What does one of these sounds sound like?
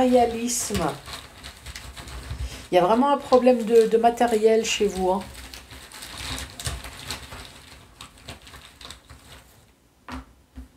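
Cloth rustles as hands rummage inside a soft bag.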